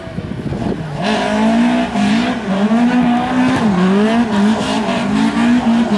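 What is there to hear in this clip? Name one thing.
A rally car's engine revs hard and roars up close.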